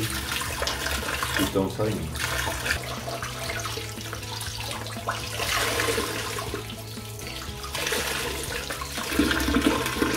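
Water splashes as a plastic part is scrubbed in a sink.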